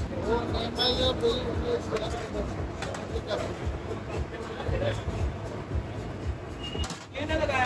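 A metal scoop scrapes against a large metal pot.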